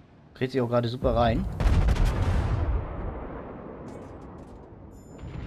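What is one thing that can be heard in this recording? Heavy ship guns fire with a deep boom that slowly rumbles away.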